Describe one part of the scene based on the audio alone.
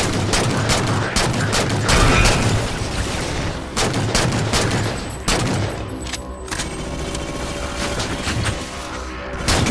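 Rifle shots crack and boom repeatedly.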